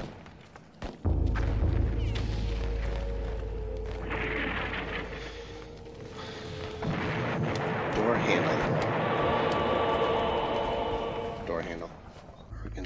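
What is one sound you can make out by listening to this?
Low eerie game music drones.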